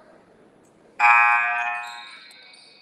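A referee blows a loud, shrill whistle.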